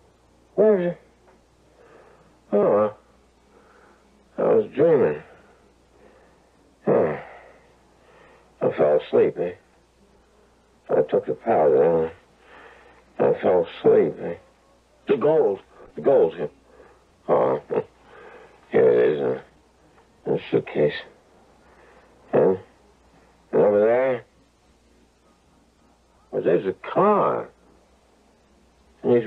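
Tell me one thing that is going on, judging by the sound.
A radio plays through its small speaker, in short bursts with pauses.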